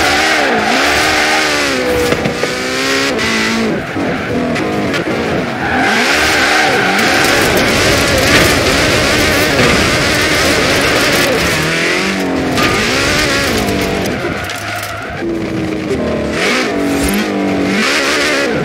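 A sports car engine revs up and down loudly as gears shift.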